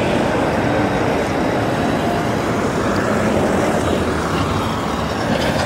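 A bus drives past with a low engine rumble.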